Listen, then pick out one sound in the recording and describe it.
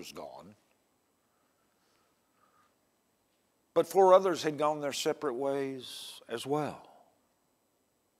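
An older man speaks calmly into a microphone, with long pauses.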